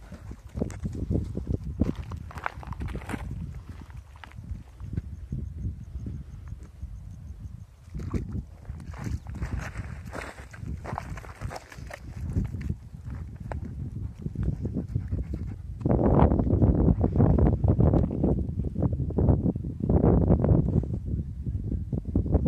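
A dog's paws crunch on dry, cracked earth.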